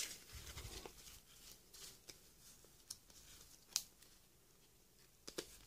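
Plastic cards rustle and click as hands shuffle through them.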